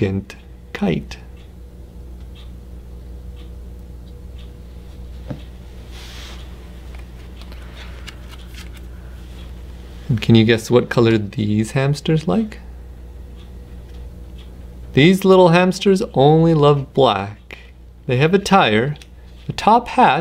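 A man reads aloud in a lively voice, close to the microphone.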